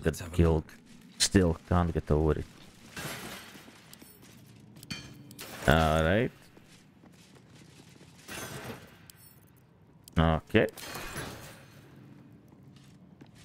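Weapons clash and strike in a battle.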